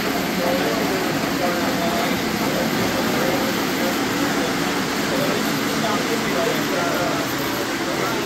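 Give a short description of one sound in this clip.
Model trains rumble and clatter along their tracks.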